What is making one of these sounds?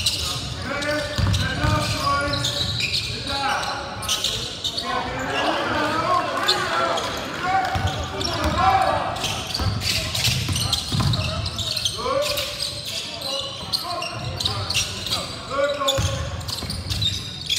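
Sneakers squeak and thump on a hardwood court in a large echoing gym.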